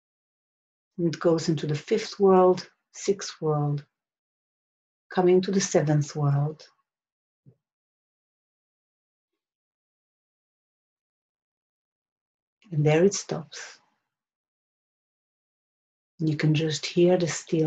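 A middle-aged woman speaks calmly and slowly close to a microphone, with long pauses.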